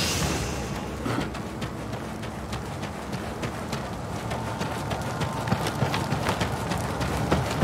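Footsteps tread quickly over the ground.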